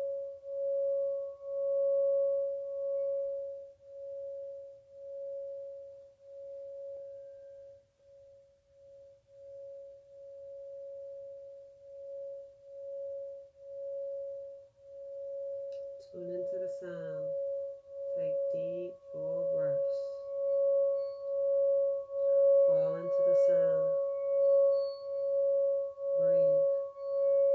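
A wooden instrument gives a steady humming tone that swells with each rubbing stroke of a hand.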